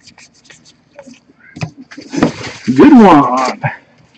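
Trading cards rustle as they are handled.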